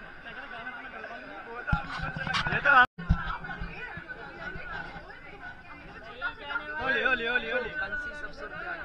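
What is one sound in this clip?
A crowd chatters and shouts loudly close by.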